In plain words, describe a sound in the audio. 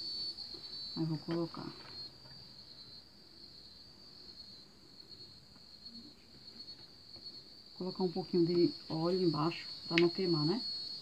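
A woman speaks calmly close by.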